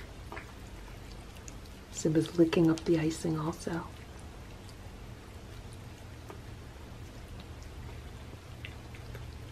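Cats chew and lap wet food close by.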